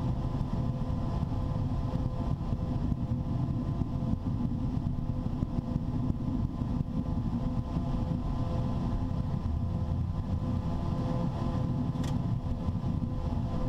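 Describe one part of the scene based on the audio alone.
A steady rumble of wheels on wet pavement fills the cockpit.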